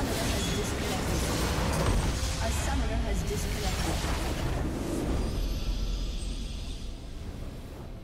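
A large structure crumbles with a deep, rumbling explosion.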